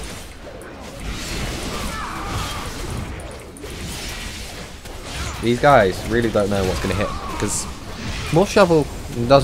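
Heavy weapons strike and clash in a fight.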